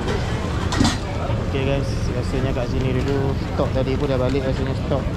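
Shoppers chatter in the open air.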